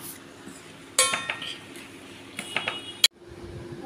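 A metal spoon clinks against a metal pot.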